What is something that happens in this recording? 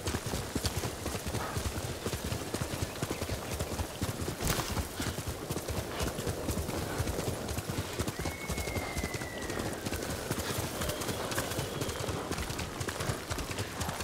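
Grass and leaves rustle as a horse brushes through.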